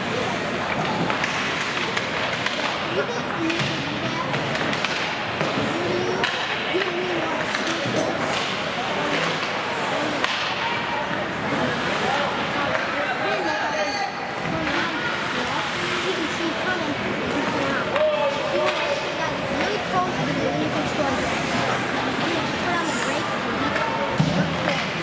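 Skates scrape and carve across the ice in a large echoing rink.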